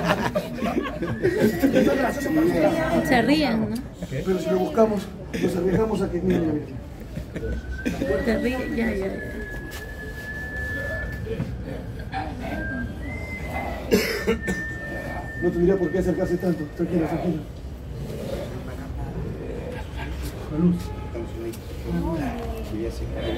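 Several men and women talk close by in a crowd.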